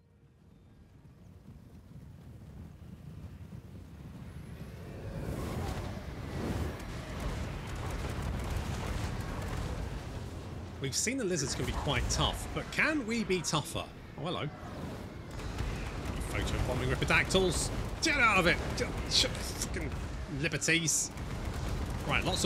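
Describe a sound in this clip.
A low rumble of a marching army swells and grows steadily louder.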